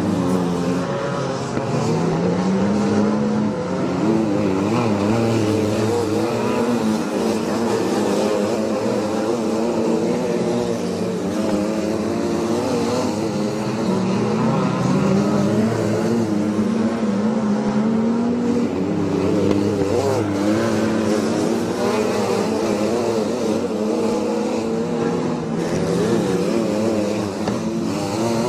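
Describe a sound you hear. Racing car engines roar loudly, revving up and down as they speed by.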